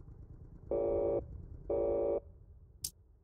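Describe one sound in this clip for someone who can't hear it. Two short electronic beeps sound.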